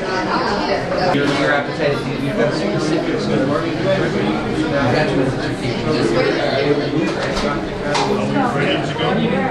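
Many men and women talk at once nearby, filling an indoor room with a busy chatter.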